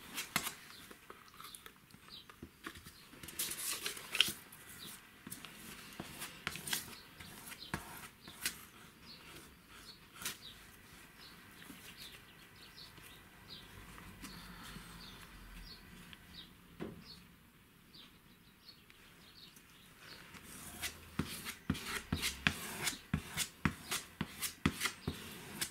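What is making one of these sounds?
A brush dabs and scrapes glue onto a wooden board.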